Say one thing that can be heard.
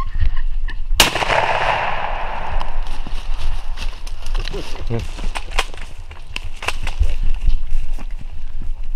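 A large bird gobbles loudly nearby, outdoors.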